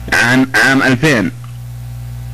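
A man speaks loudly and with animation through a microphone.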